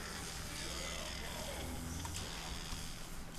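Electricity crackles and buzzes loudly.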